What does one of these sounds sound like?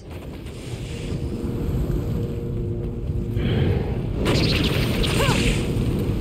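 A magic spell bursts with a hissing whoosh.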